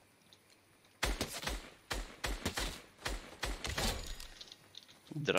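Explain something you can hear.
Rapid gunshots ring out in a quick burst.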